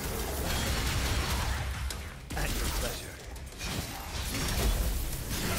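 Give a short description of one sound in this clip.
Blades clash and slash in a fast fight.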